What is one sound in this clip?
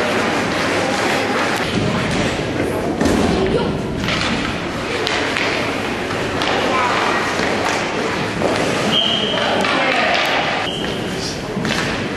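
Skates scrape and carve across ice in a large echoing hall.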